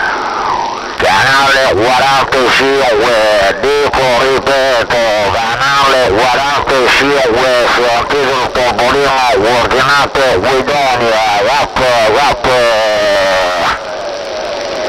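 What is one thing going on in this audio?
A radio signal warbles loudly through a receiver.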